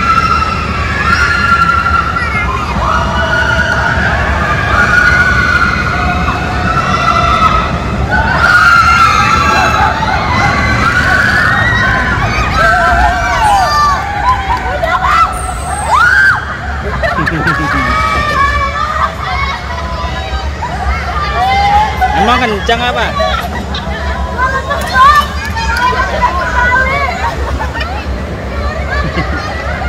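Children and young riders shriek and shout with excitement nearby.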